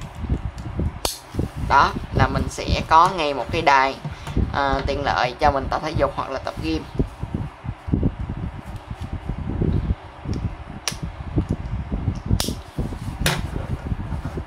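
A plastic buckle clicks and snaps.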